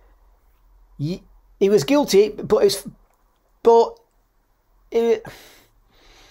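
A middle-aged man speaks calmly and close to a microphone, in short phrases.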